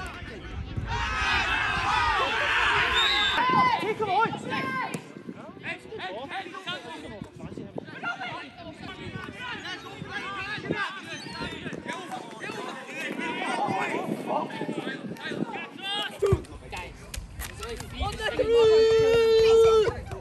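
Spectators chatter and cheer nearby.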